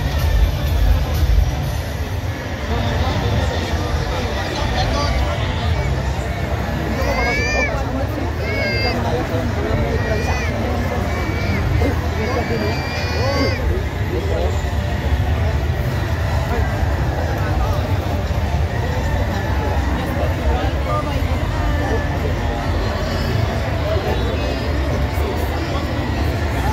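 A large crowd of men talks and shouts loudly all around, close by.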